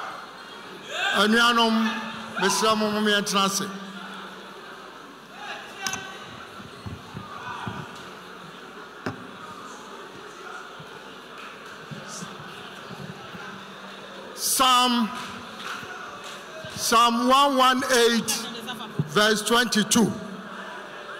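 A large crowd chants and cheers loudly.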